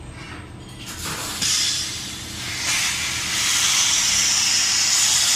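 Pressurised gas hisses loudly as it sprays out of a valve.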